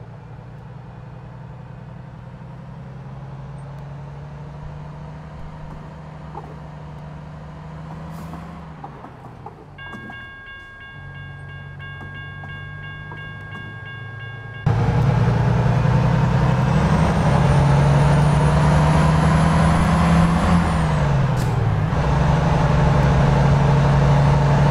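A truck engine hums steadily, growing louder partway through.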